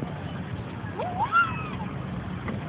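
A young child babbles in a high voice.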